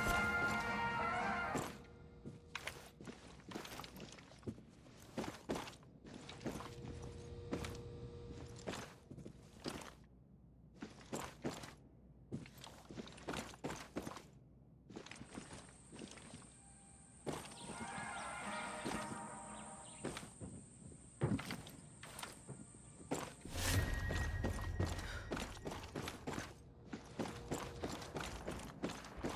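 Footsteps thud steadily on a hard floor indoors.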